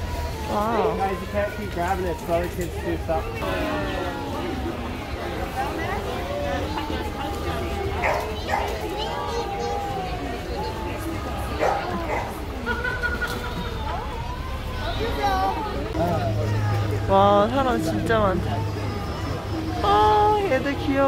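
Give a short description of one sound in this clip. A crowd of adults and children chatters outdoors nearby.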